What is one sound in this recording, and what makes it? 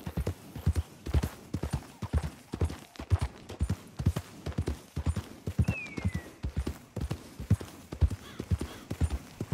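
A horse's hooves thud rhythmically on a dirt path at a steady trot.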